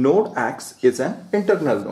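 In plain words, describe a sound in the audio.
A pen scratches on paper.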